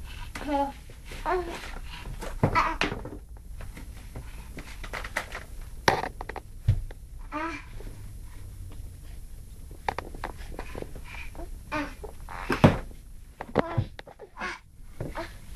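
A toddler babbles and squeals close by.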